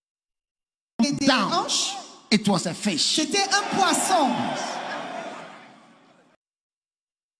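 A man preaches loudly and with animation through a microphone in a large echoing hall.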